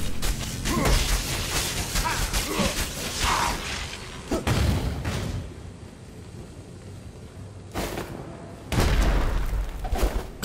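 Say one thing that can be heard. Magical spells crackle and burst in quick succession.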